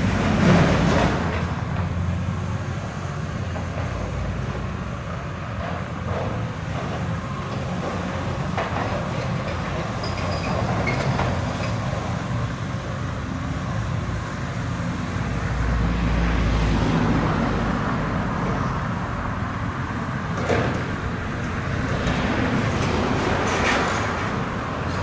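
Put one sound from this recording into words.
Metal scrap clanks and crashes as an excavator tears it apart.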